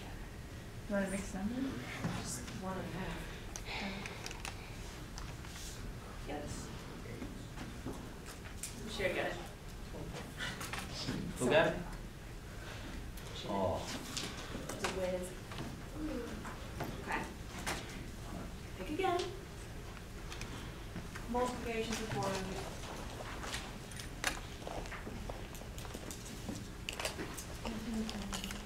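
A young woman speaks to an audience in a room with a light echo.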